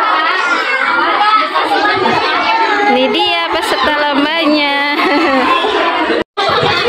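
Many children chatter and shout loudly all around, echoing off hard walls.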